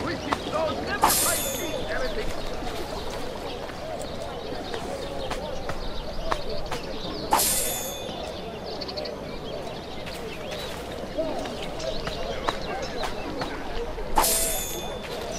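A sharp metallic rattle sounds as items are picked up.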